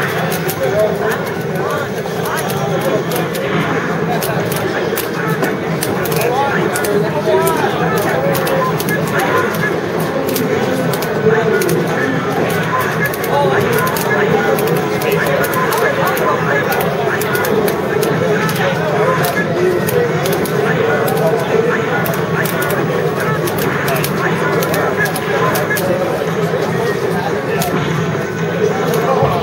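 Fighting game music plays steadily.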